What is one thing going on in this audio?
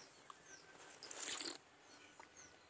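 A woman sips and slurps coconut water.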